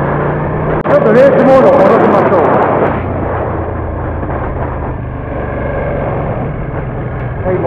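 A motorcycle engine hums steadily while riding.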